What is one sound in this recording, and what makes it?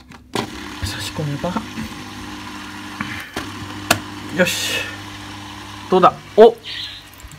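An aquarium filter pump hums steadily.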